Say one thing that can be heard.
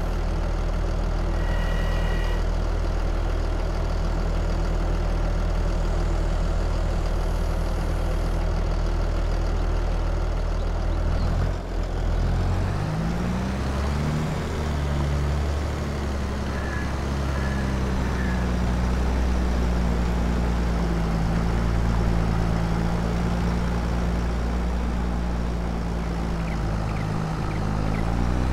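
A tractor engine drones steadily and shifts pitch as it pulls away.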